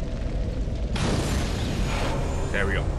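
A fire whooshes and crackles.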